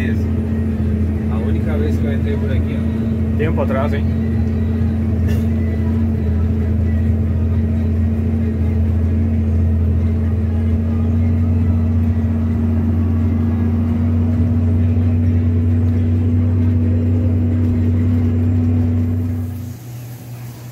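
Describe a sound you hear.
Tyres rumble on a dirt road.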